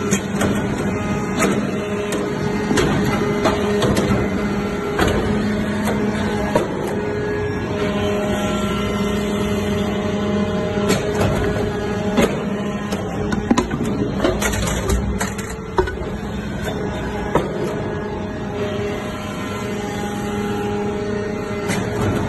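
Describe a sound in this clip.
A hydraulic machine hums steadily with a loud motor drone.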